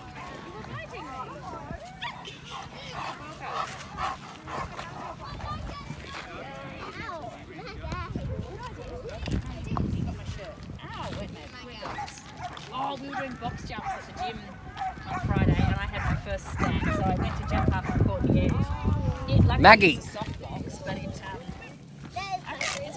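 Women and girls talk casually nearby outdoors.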